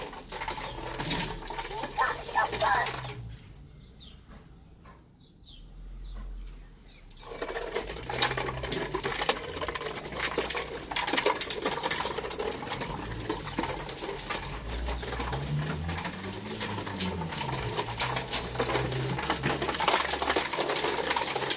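A child's plastic tricycle rolls and rattles over paving stones.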